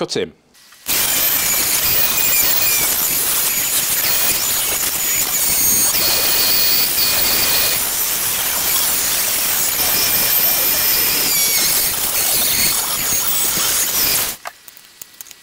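A rotary tool whines at high speed as its cutting disc grinds through plastic.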